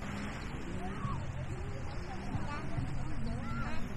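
A young child's voice chatters nearby.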